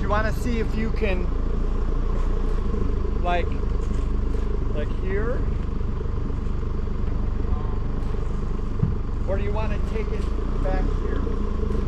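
A man talks outdoors at a distance.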